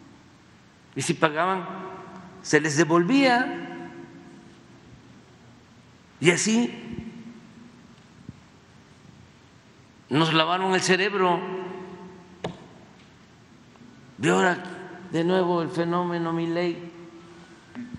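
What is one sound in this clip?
An elderly man speaks slowly into a microphone, in short bursts with long pauses, in a hall with a slight echo.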